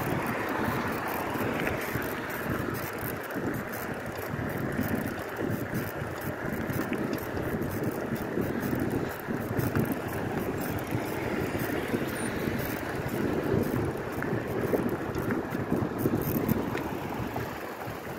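Wind rushes past a moving bicycle, outdoors.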